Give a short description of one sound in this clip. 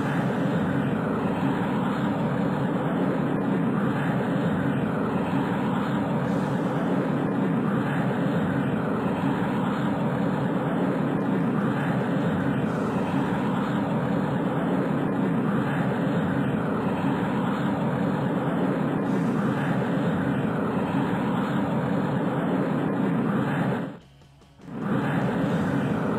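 A rocket engine roars at full thrust.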